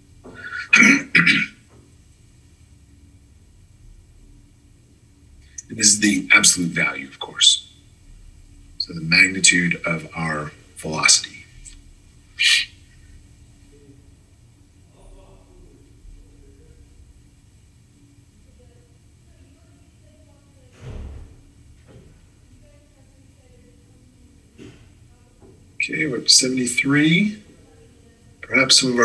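A man speaks calmly through an online call, in short bursts with pauses.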